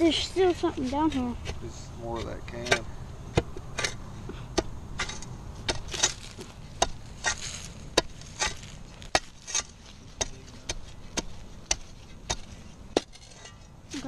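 A shovel scrapes and chops into dry soil.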